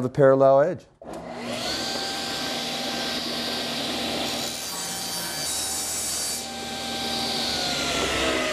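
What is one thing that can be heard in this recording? A table saw whirs steadily as it cuts through a board.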